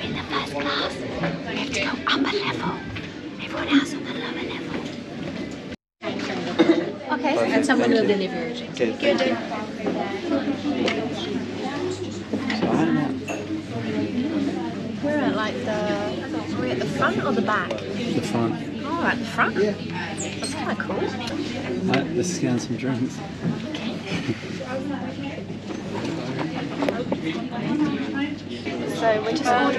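A young woman talks close up, with animation.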